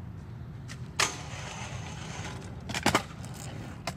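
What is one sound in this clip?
A scooter's wheels clack hard onto a rail and the ground.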